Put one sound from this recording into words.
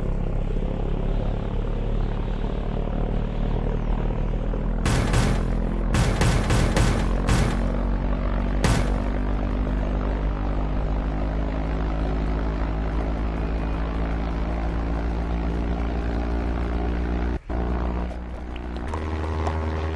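A propeller plane engine drones steadily.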